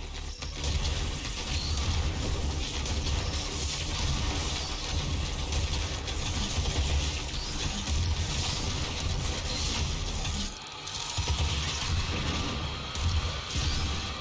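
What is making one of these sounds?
A monster roars and growls.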